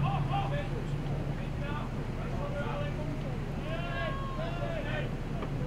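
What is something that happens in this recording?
Soccer players shout to each other across an open field.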